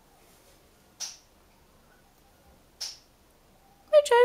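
A parrot makes short sharp squawks.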